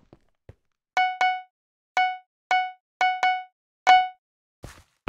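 Short bright chimes ring out in quick succession.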